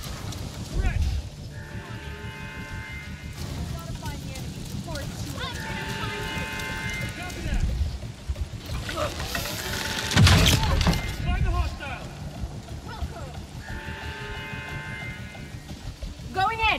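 Explosions boom with deep, heavy rumbles.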